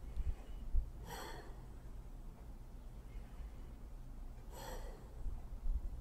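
An older woman breathes out heavily close by.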